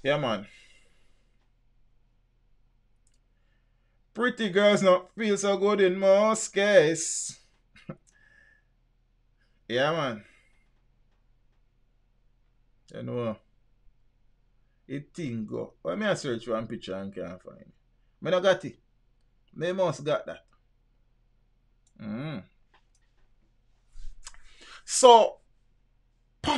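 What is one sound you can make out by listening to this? A man speaks with animation into a close microphone, in short bursts between pauses.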